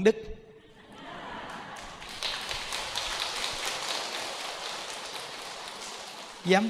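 An audience laughs together.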